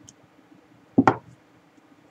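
A glass is set down on a table with a knock.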